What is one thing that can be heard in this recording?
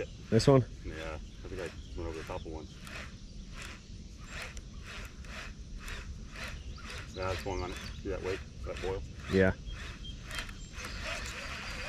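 A fishing reel clicks rapidly as its handle is cranked.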